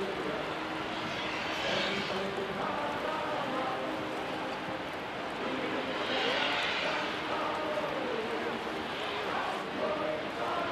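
Water churns and splashes behind a large ship.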